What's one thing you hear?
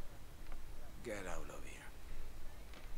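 A man answers briefly and calmly.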